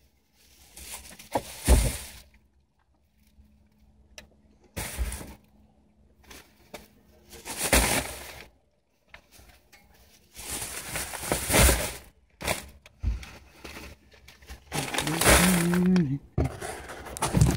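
Plastic shopping bags rustle and crinkle as they are set down.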